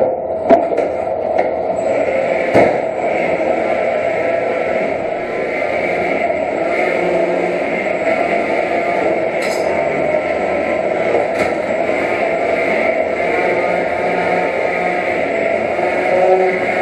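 Small robots whir and buzz as they drive across a hard floor.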